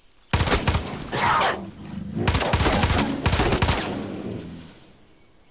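A rifle fires bursts of loud shots.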